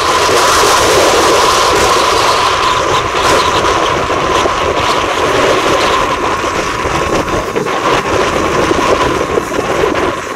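A steam locomotive chuffs steadily as it pulls a train.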